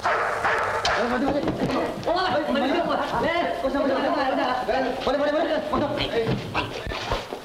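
Several men shout to each other urgently, close by.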